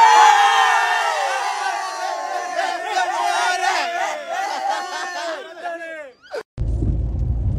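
A group of young men cheer and shout close by.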